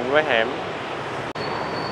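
Motorbike engines hum along a busy street.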